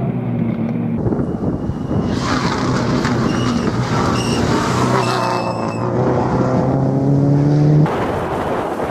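A turbocharged flat-four Subaru Impreza rally car races past at full throttle, its engine note rising through the gears.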